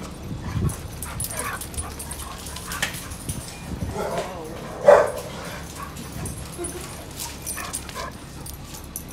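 Two dogs growl and yip as they play-fight nearby.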